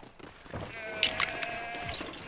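Small game pieces pop with quick bright clicks.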